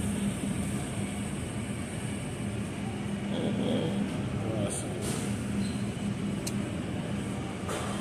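A refrigerated display case hums steadily.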